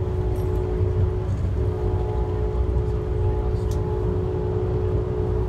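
A train's motor hums with a steady tone.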